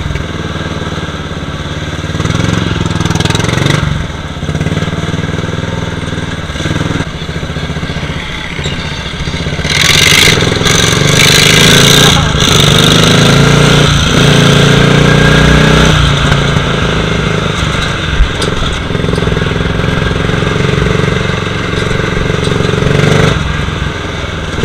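A lawn mower engine roars close by, revving up and down.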